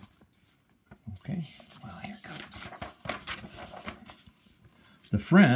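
A book's pages rustle as the book is handled.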